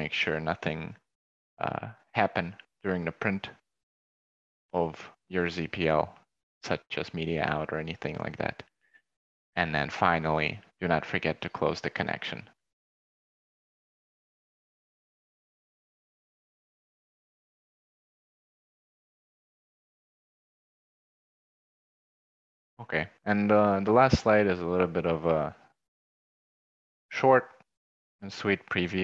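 A young man speaks calmly into a headset microphone, heard as if over an online call.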